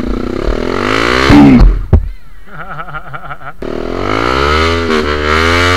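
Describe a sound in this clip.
A motorcycle engine revs hard and climbs in pitch.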